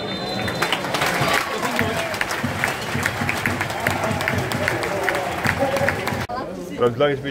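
A large outdoor crowd murmurs and cheers at a distance.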